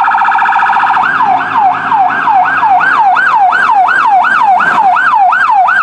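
A siren yelps in a fast, rapid warble.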